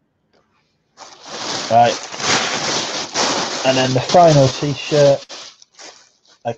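Fabric rustles close to a microphone.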